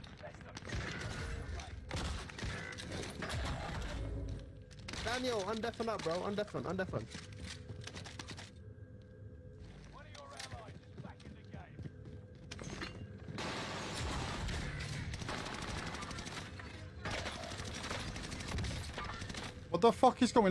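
Gunfire rattles in bursts.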